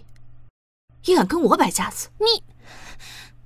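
A young woman speaks angrily and sharply, close by.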